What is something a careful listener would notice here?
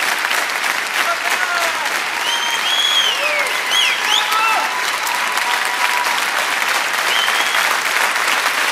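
People in a crowd whistle and cheer.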